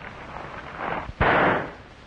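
A gunshot bangs loudly indoors.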